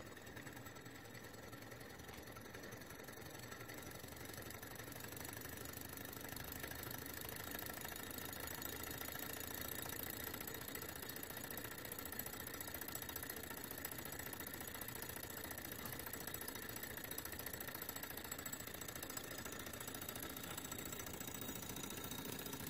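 A small engine whirs and rattles steadily, running fast.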